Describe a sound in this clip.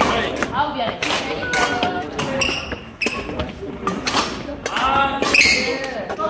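Badminton rackets smack a shuttlecock back and forth in an echoing hall.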